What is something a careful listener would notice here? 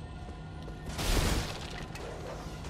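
Wooden crates smash and splinter.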